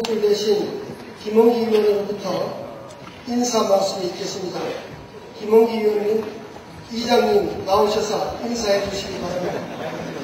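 A man speaks loudly through a loudspeaker in a large echoing hall.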